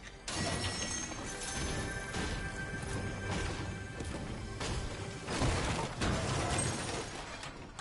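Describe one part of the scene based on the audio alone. A pickaxe strikes wood with hard knocks.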